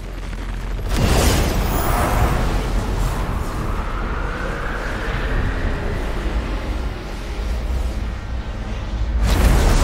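A loud magical rushing roar surges and slowly rises in pitch.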